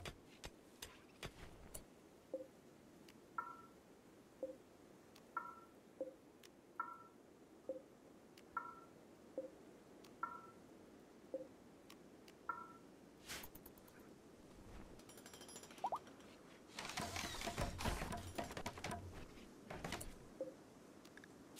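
Interface clicks and chimes sound as menu items are selected.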